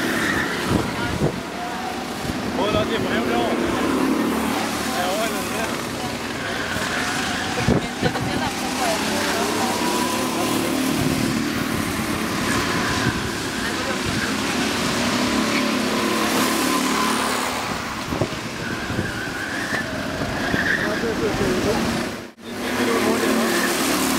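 A go-kart engine buzzes loudly as it races past and fades.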